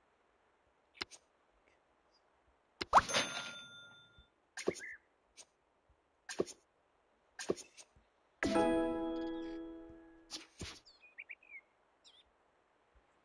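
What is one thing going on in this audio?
Game interface sounds chime and click as buttons are pressed.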